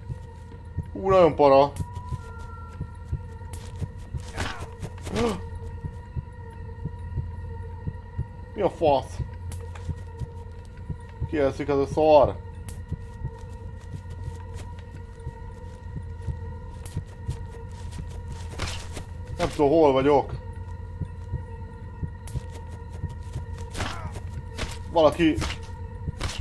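A man exclaims in short, loud bursts close to a microphone.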